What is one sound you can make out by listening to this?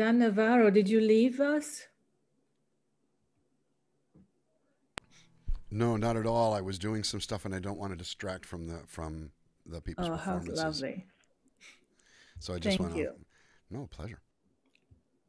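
A woman talks calmly over an online call.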